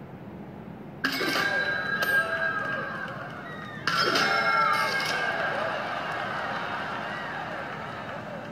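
Game sound effects chime and sparkle as points are scored.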